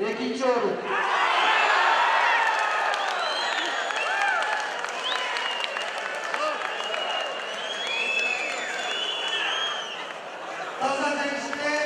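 A large crowd cheers and whistles in a big echoing hall.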